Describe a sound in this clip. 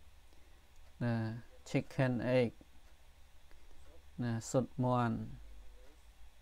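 A man reads out words slowly and clearly through a microphone.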